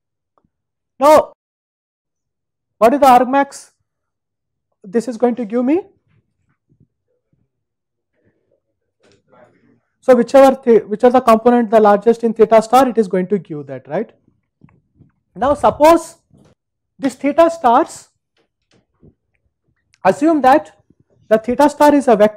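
A man lectures calmly in bursts through a clip-on microphone, with pauses between phrases.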